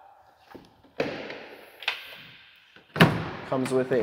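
A truck's rear canopy window swings open with a clunk.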